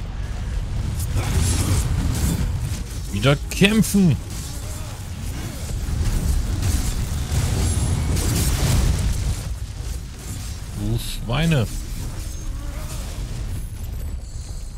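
Sword slashes and impacts clash rapidly during a fight.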